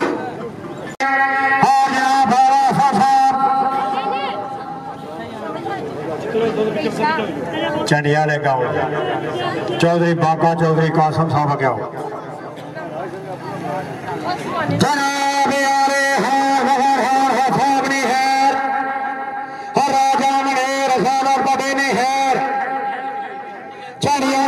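A man sings loudly into a microphone, heard through a loudspeaker.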